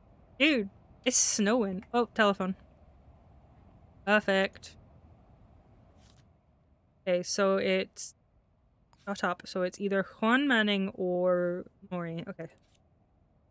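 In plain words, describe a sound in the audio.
A young woman speaks close into a microphone.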